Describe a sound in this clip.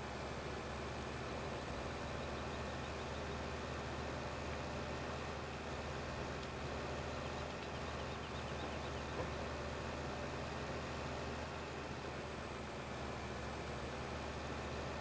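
A tractor engine drones as the tractor drives along a road.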